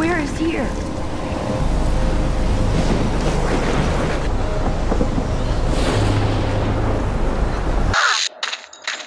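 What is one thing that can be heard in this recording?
A storm wind roars and howls.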